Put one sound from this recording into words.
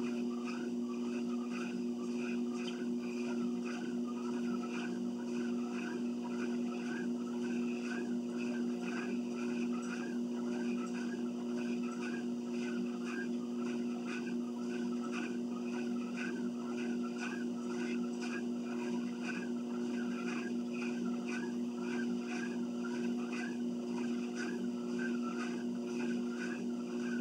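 Footsteps thud on a moving treadmill belt in a steady walking rhythm.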